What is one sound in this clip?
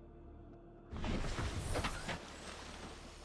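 A hatch opens with a loud rush of water.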